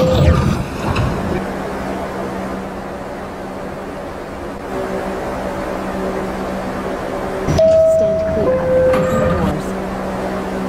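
A subway train's motor hums steadily.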